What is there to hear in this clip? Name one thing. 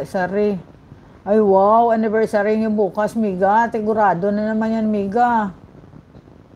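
A middle-aged woman sings close to a microphone.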